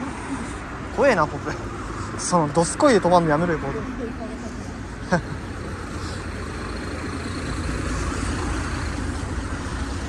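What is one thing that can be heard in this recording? Footsteps walk steadily on pavement outdoors.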